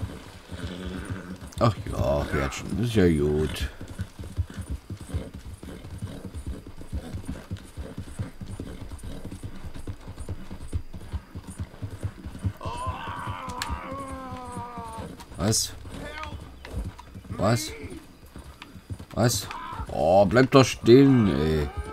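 Horse hooves clop on a dirt trail.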